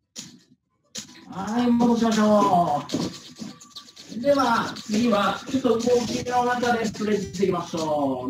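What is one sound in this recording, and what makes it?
A man speaks loudly and with animation over an online call.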